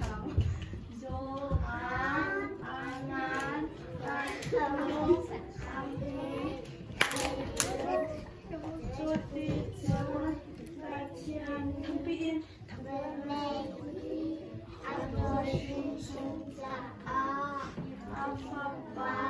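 Young children sing together through microphones.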